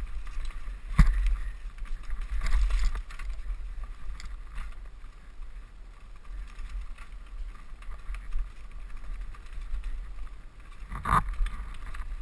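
A bicycle frame rattles and clunks over bumps.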